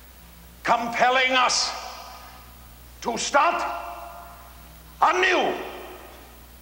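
An elderly man declaims loudly in short bursts, with an echo in a large hall.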